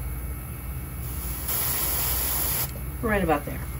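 An airbrush hisses as it sprays a short burst of paint.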